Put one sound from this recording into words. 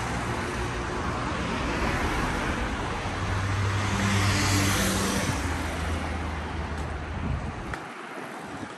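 Traffic rumbles past on a nearby street, louder at first and then easing off.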